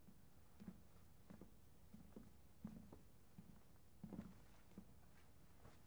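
Footsteps knock on a wooden floor at an even pace.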